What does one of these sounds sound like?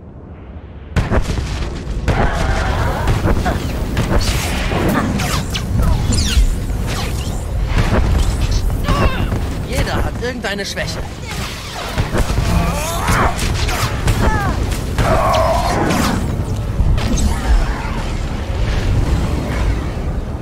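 Energy blades hum and clash in a fight.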